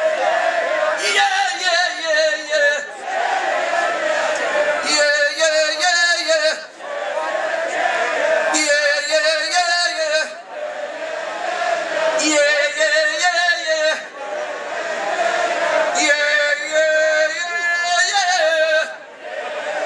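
A man sings out loudly through a microphone over loudspeakers in a large echoing hall.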